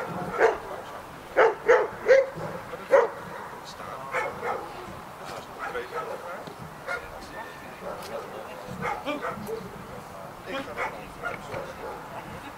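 A man shouts short commands outdoors.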